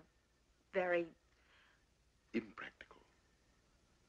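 A woman speaks calmly, close by.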